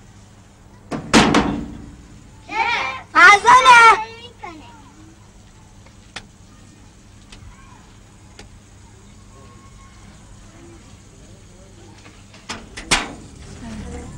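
A young boy knocks loudly on a wooden door.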